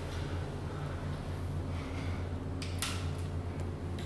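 A door handle rattles as a door opens.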